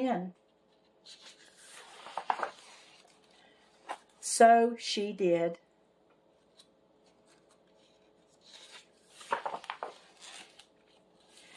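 Paper pages rustle and flap as a book's pages are turned.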